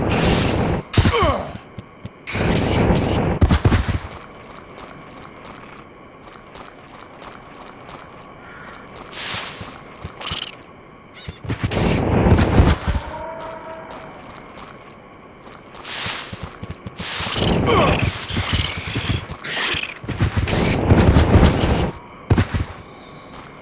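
A gun fires booming blasts.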